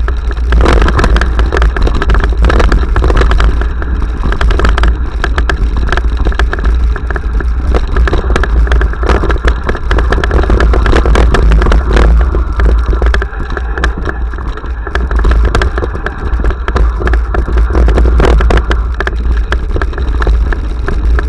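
Wind rumbles loudly across a microphone.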